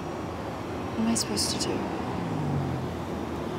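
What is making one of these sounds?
A young woman speaks softly and quietly, close by.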